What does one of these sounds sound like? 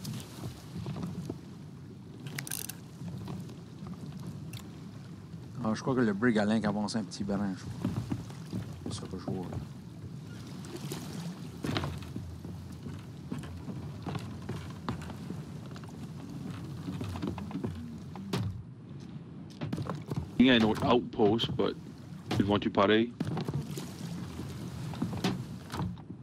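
Waves wash and lap against a wooden boat.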